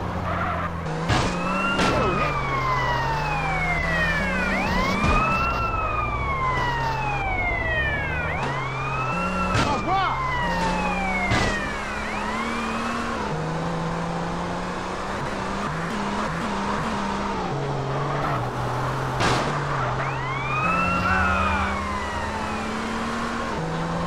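A police siren wails nearby, rising and falling.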